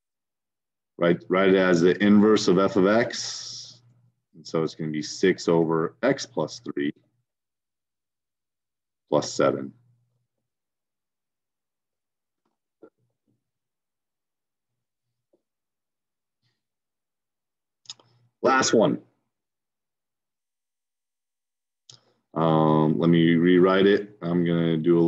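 A man explains calmly into a close microphone, with pauses.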